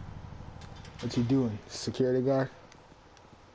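A man speaks quietly and calmly.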